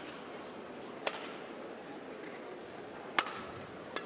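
Rackets strike a shuttlecock with sharp pops.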